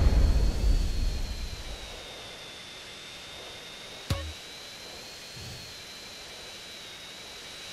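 A jet plane's engine whines with a high steady tone.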